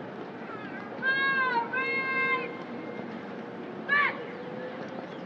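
A man shouts drill commands loudly in a drawn-out, sing-song voice outdoors.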